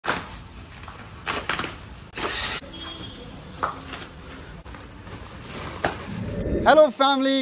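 Cardboard and plastic wrap rustle and crinkle as they are pulled apart.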